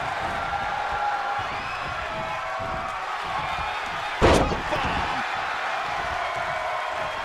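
A large crowd cheers steadily in an arena.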